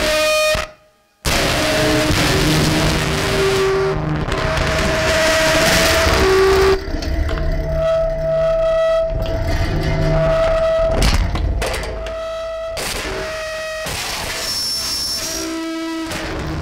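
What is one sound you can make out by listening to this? Electronic tones drone loudly and shift in pitch.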